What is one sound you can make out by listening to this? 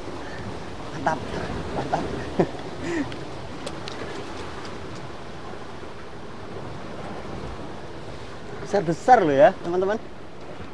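A man speaks briefly nearby in short bursts.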